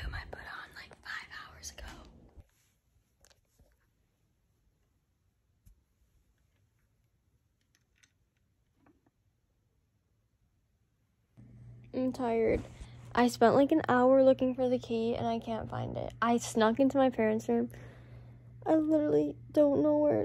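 A young woman talks close to a phone microphone.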